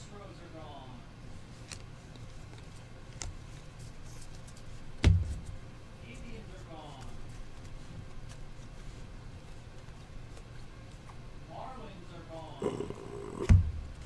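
Trading cards rustle and flick as they are sorted by hand.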